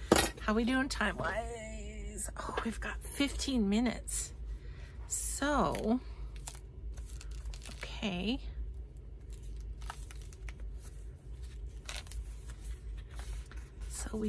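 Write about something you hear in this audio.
Paper pages rustle and flip as they are turned.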